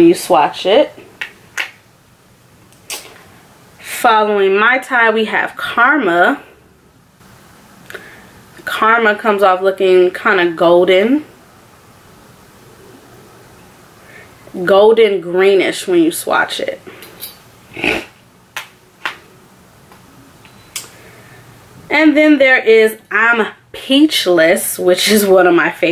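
A young woman talks calmly and close to a microphone, in bursts with pauses.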